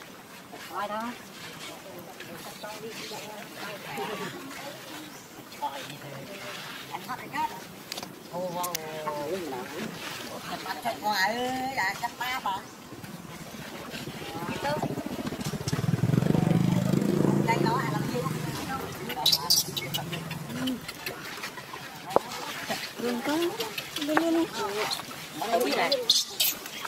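A baby macaque gives shrill, wavering squeals.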